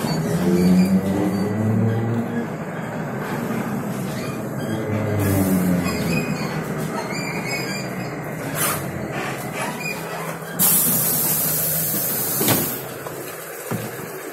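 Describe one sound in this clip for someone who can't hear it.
A bus engine hums and rumbles while driving.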